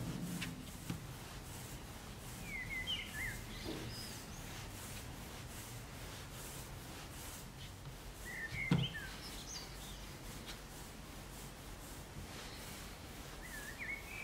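Hands roll soft dough softly against a wooden board.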